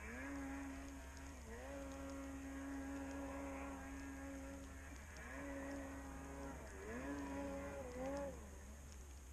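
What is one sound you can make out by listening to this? Snowmobile engines idle nearby with a low, steady hum.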